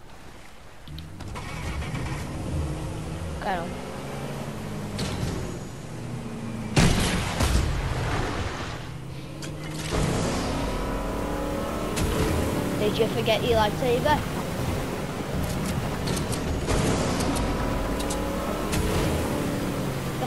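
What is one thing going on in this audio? A motorboat engine hums and revs.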